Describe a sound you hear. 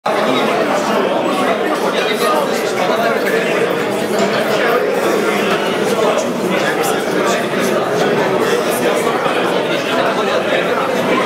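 A crowd of men, women and children chatters loudly in a large echoing hall.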